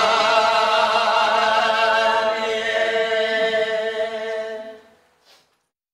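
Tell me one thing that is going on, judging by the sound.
A middle-aged woman sings through a microphone in long, held notes.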